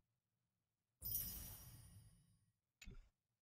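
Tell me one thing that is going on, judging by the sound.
A bright sparkling chime rings out and fades.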